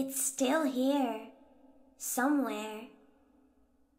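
A young girl speaks softly and eerily, with a slight echo.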